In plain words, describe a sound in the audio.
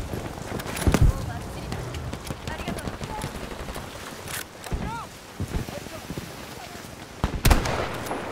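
Gunshots crack loudly, one at a time.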